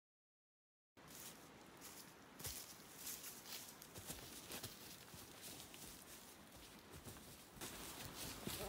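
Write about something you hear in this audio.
Feet scuffle on leaf litter.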